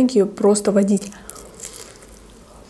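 A young woman bites into crispy pastry.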